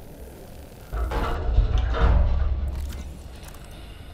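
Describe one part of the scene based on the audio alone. A door bursts open with a loud low thud.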